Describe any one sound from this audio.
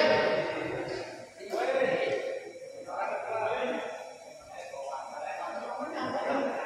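A shuttlecock is struck with a racket.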